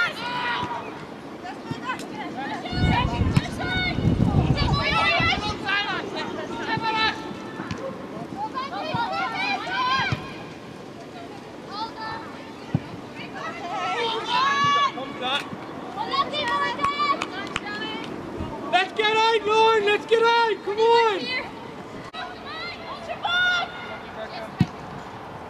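Girls and young women shout and call to each other outdoors.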